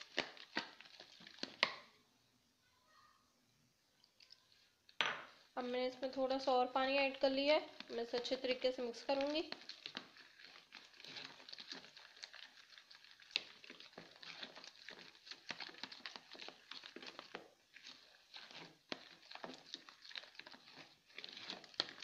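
A spoon scrapes and clinks against a plastic bowl while stirring a thick batter.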